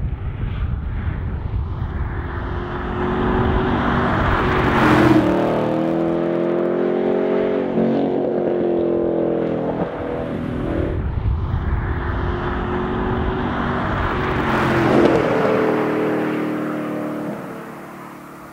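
A powerful car engine roars loudly as a car speeds past.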